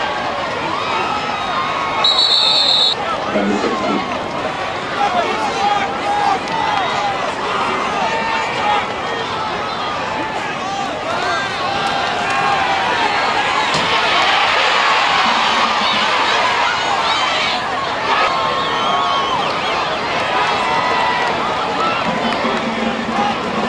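Spectators chatter and call out nearby throughout.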